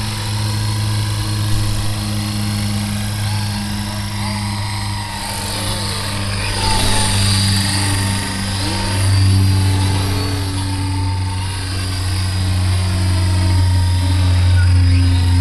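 A model helicopter's engine whines steadily as its rotor buzzes, rising and falling as it flies past.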